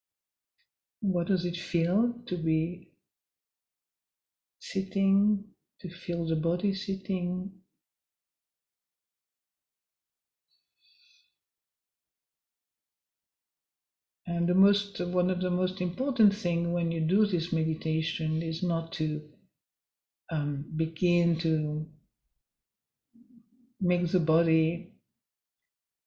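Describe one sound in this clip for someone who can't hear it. An elderly woman speaks calmly into a microphone, with pauses.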